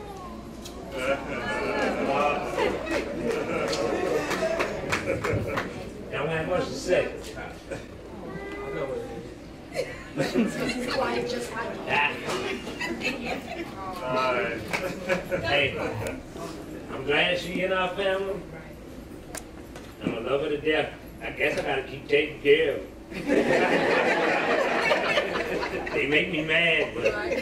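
A man speaks with animation into a microphone over loudspeakers in an echoing room.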